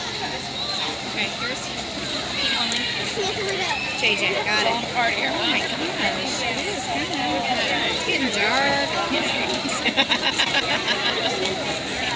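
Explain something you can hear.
A swimmer splashes through the water.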